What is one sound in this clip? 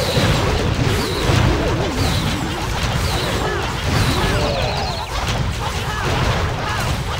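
Explosions and clashing battle effects from a game sound continuously.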